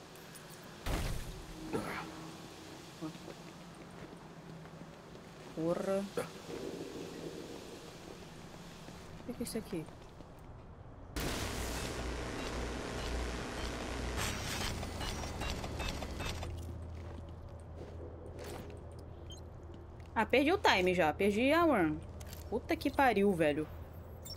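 A young woman speaks now and then, close to a microphone.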